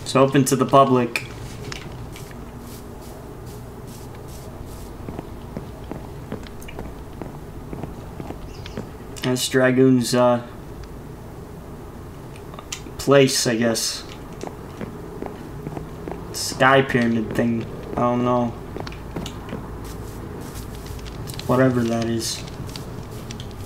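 A man speaks in short bursts, close to a microphone.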